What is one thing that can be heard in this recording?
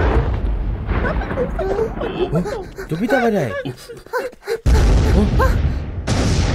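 A young woman cries out in alarm.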